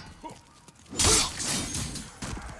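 A sword swishes and strikes with a sharp clash.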